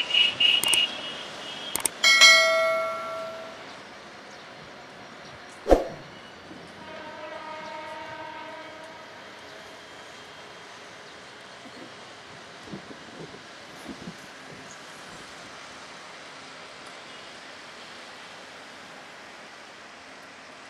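A diesel train rumbles slowly along the tracks.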